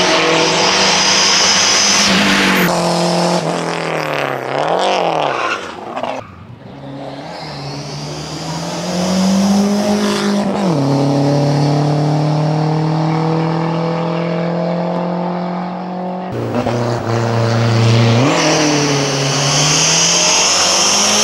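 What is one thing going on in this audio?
A turbocharged four-cylinder rally car races uphill at full throttle, its engine revving hard through the gears.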